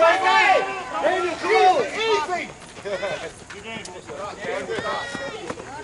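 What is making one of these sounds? Several adults shout and cheer loudly nearby, outdoors.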